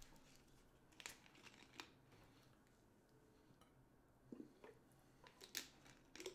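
A plastic bottle crinkles and rattles in someone's hands.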